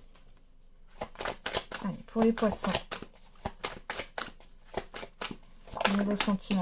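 Cards slide and tap against each other as a deck is split and handled.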